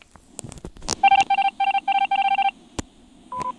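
Short electronic beeps rattle off quickly as in a video game.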